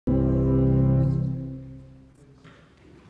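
A small choir sings a held chord that fades away.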